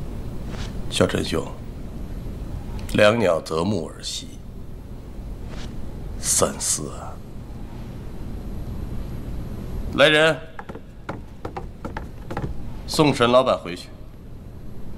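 A second man answers nearby in a low, steady voice.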